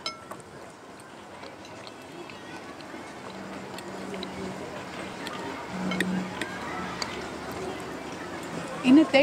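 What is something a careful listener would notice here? Cutlery clinks lightly on plates.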